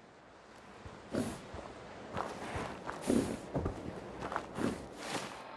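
Footsteps crunch over dry grass and ground.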